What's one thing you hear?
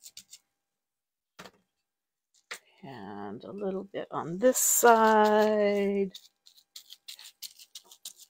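Paper rustles and taps against a table.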